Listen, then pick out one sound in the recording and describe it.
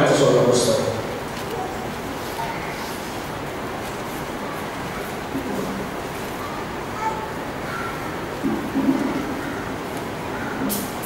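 A man speaks quietly and haltingly into a microphone, heard through loudspeakers.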